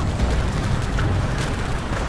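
An aircraft engine drones low and steady.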